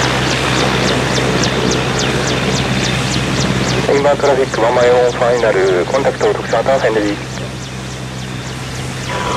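A helicopter's rotor blades thump in a fast rhythm.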